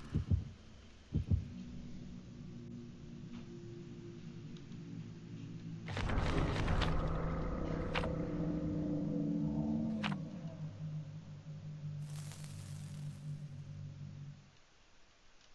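Low, eerie droning music plays.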